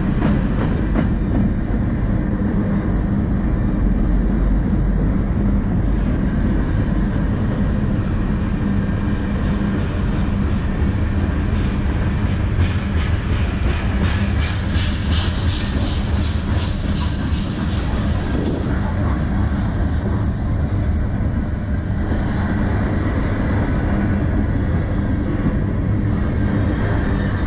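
A long freight train rumbles steadily past close by.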